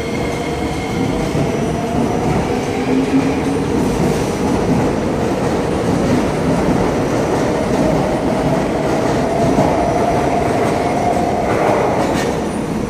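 An electric metro train pulls away from a platform, its motors whining and rising in pitch.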